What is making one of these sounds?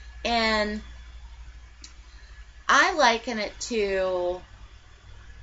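A young woman speaks expressively, close to a microphone, in short bursts.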